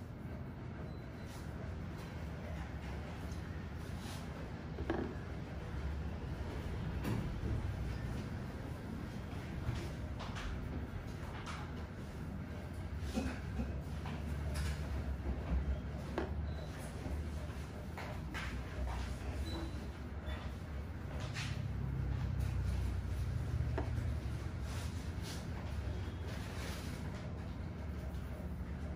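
Fingers rub and scratch through hair close by, with soft crackles.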